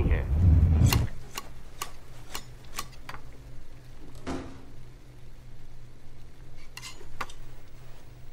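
A knife chops vegetables on a wooden board with sharp, regular knocks.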